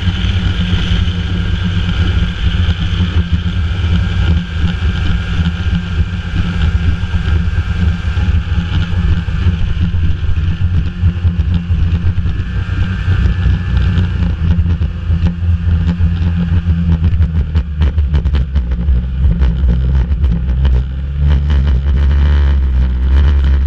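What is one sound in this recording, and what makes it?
A snowmobile engine drones as the machine rides at speed along a snowy trail.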